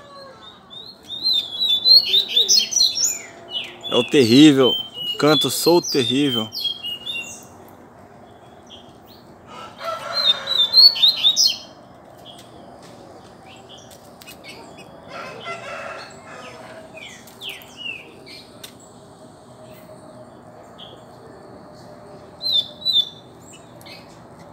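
A caged songbird chirps and sings in short bursts.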